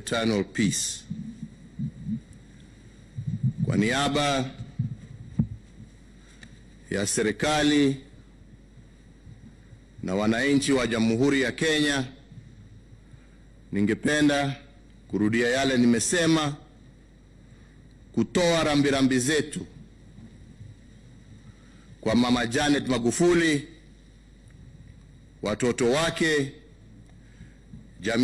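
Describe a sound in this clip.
A man speaks slowly and solemnly into a microphone, with long pauses.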